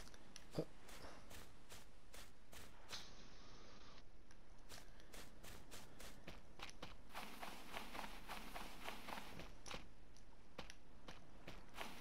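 Footsteps fall on sand.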